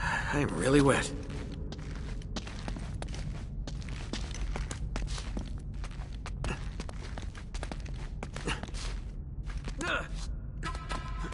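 Footsteps patter on stone.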